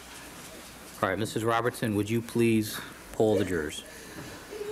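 A man speaks calmly and clearly.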